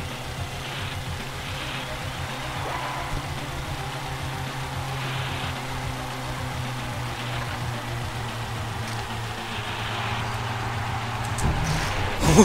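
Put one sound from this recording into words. A toy kart engine hums steadily as it races.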